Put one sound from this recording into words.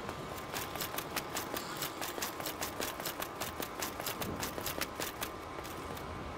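Armoured footsteps clank quickly on stone steps.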